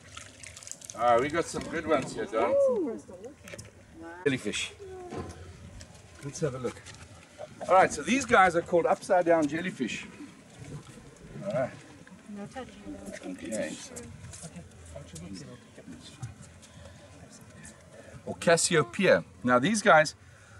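An older man talks with animation close by, outdoors.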